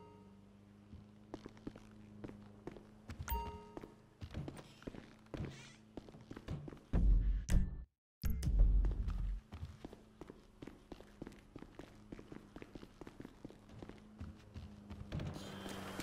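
Footsteps hurry across hard floors and down stairs.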